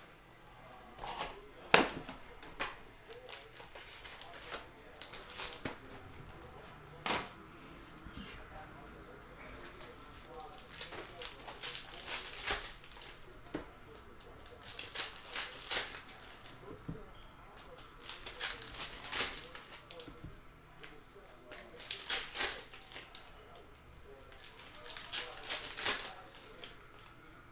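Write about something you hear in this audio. Foil card packs crinkle and tear as they are opened by hand.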